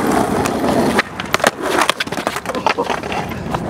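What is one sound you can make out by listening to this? A skateboard clatters on the pavement.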